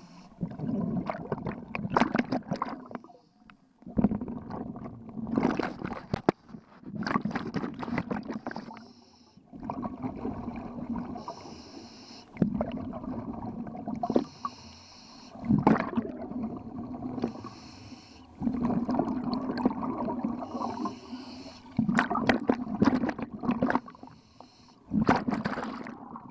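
Bubbles burst out and gurgle loudly underwater in regular bursts.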